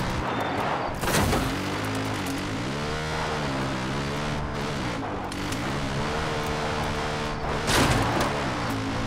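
A quad bike thumps loudly as it jolts over bumps.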